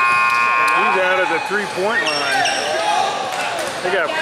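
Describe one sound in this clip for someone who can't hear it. Spectators close by shout and cheer in an echoing gym.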